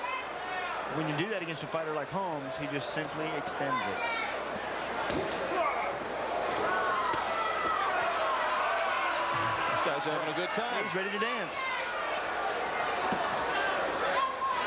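A crowd murmurs and cheers in a large echoing arena.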